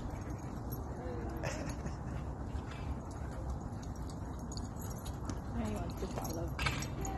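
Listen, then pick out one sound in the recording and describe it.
Dogs yelp and bark while playing.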